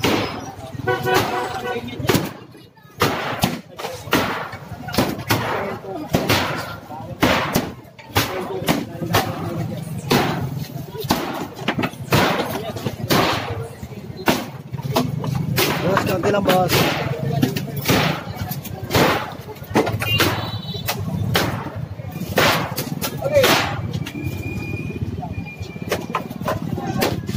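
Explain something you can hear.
Wooden planks crack and bang as men tear down a stall.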